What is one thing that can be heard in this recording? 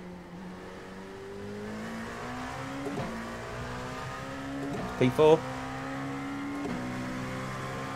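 A racing car engine revs up steadily, dropping in pitch at each gear change.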